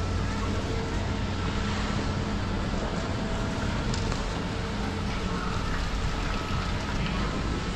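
Gondola lift terminal machinery hums and whirs.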